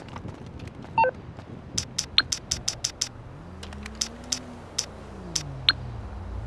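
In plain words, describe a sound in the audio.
A phone menu clicks and beeps as buttons are pressed.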